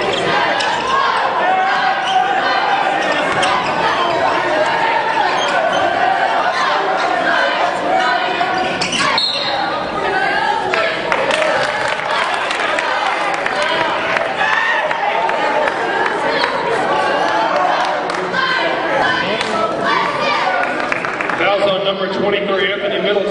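A crowd cheers and shouts loudly in a large echoing gym.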